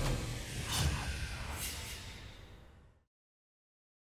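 A revolver fires with loud bangs that echo and fade.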